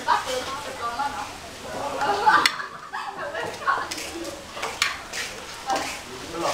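Young people chat and laugh nearby.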